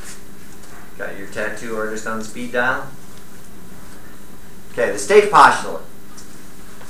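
An elderly man speaks in a lecturing tone, in short bursts.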